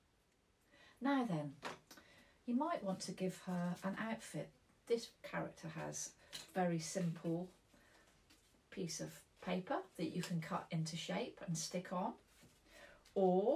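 A middle-aged woman talks calmly and clearly, close to a microphone.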